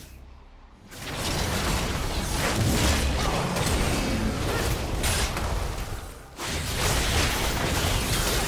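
Magic spells whoosh and crackle in a fast game battle.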